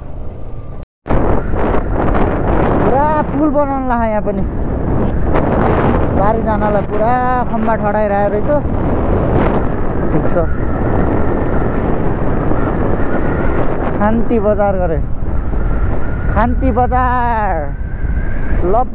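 A motorcycle engine hums and revs up through the gears.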